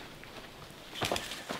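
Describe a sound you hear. Footsteps crunch on dry leaves and dirt.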